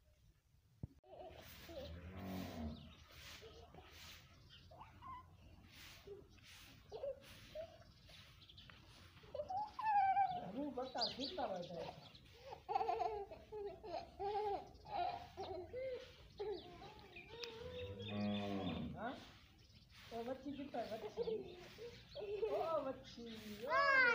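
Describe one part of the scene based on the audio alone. A small child babbles and chatters close by.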